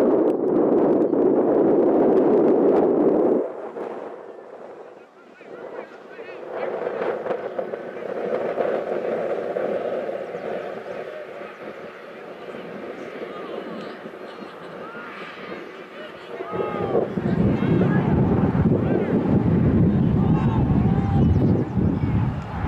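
Young men shout to each other on an open playing field, some distance away.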